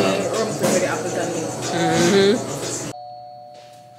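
A woman talks and laughs close by.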